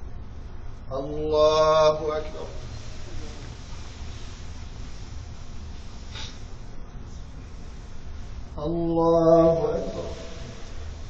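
A man chants a short call through a microphone in an echoing hall.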